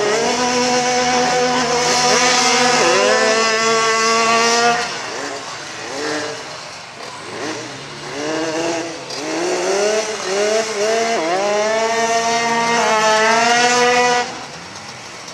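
A motorcycle engine revs loudly and roars off with rising pitch.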